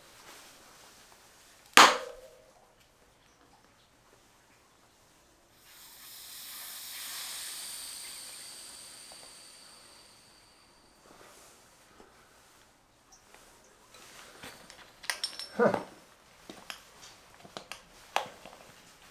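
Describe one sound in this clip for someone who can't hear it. A tire bead scrapes and creaks as it is levered over a rim.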